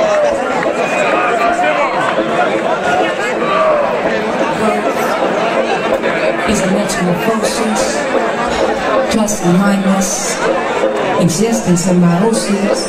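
Loud electronic dance music plays through big speakers in a large echoing hall.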